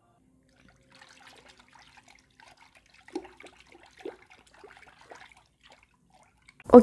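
A hand swishes and splashes water.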